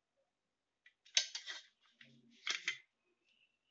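A ruler slides across paper.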